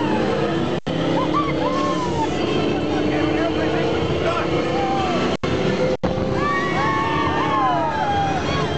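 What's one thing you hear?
A ride car rumbles along a track at speed.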